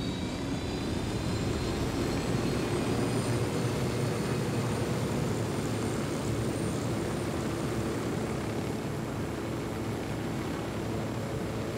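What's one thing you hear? A helicopter's rotor thumps loudly in flight.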